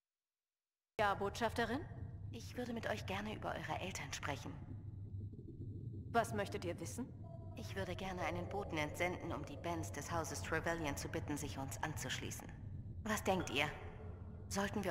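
A young woman answers in a calm voice.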